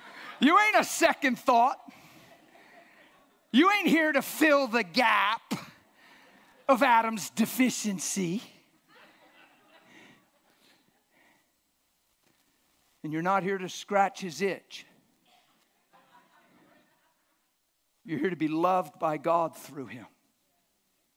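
An elderly man speaks with animation through a microphone in a large room, pausing between phrases.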